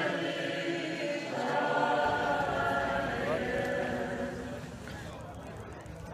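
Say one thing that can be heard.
A crowd of people sings a hymn together outdoors.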